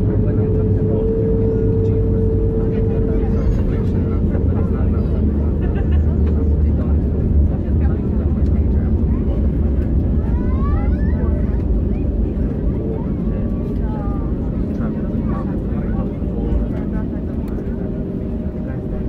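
An airliner's wheels rumble over the runway.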